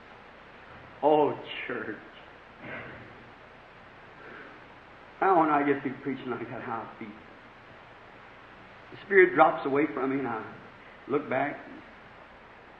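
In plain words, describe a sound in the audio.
A man preaches in short, emphatic bursts, heard through an old, muffled recording.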